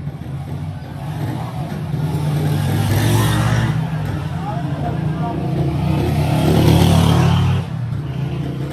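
A small motorcycle rides past.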